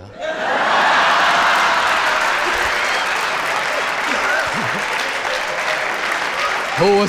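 A large studio audience applauds loudly.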